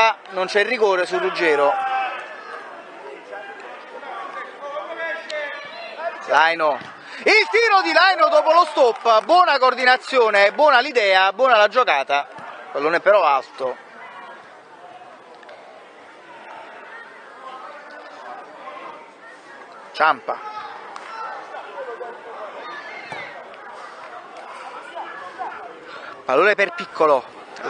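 Children shout and call out loudly outdoors.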